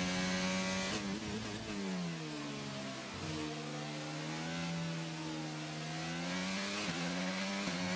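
A racing car engine drops in pitch as the car slows down, then climbs again.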